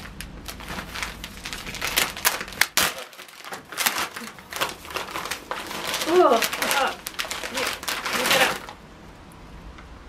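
A plastic mailer bag crackles as it is opened.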